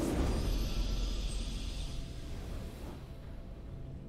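A triumphant game fanfare plays and fades.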